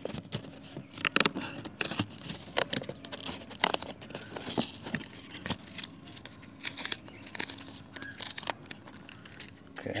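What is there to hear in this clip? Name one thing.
A paper envelope rustles and crinkles up close.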